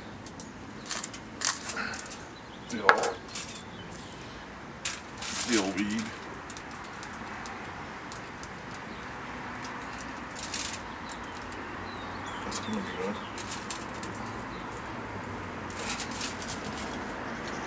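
Aluminium foil crinkles and rustles.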